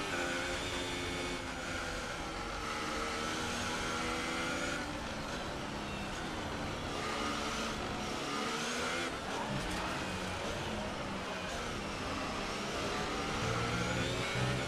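A racing car engine screams at high revs, its pitch rising with each gear and dropping as it brakes.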